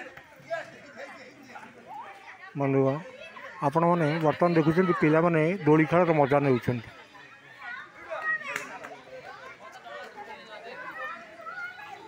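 Children shout and chatter outdoors.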